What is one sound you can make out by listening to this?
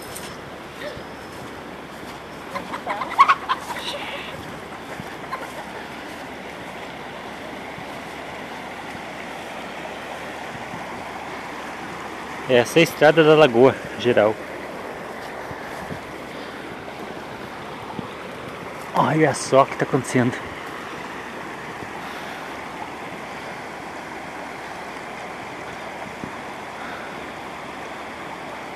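Muddy floodwater rushes and churns steadily outdoors.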